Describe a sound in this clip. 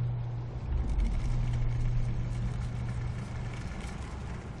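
A low magical hum drones steadily, then fades.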